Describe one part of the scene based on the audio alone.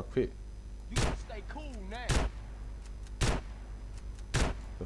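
A gun fires single loud shots, one every second or so.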